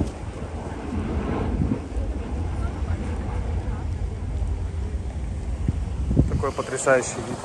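A jet airliner roars in the distance.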